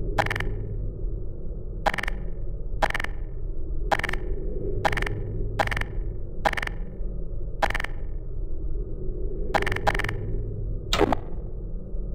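A game's weapon menu clicks sharply, over and over, as weapons are switched.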